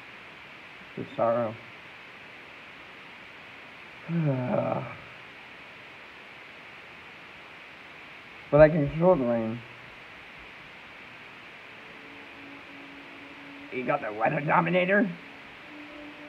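A young man speaks close up in short bursts, calmly.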